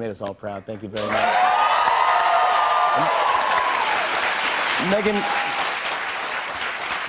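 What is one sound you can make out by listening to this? People clap and cheer loudly.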